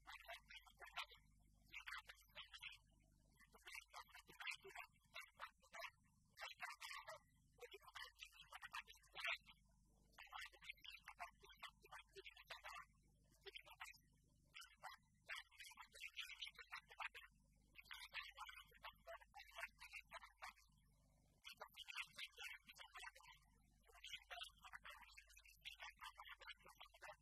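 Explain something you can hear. An elderly man reads out steadily into a microphone in a large echoing hall.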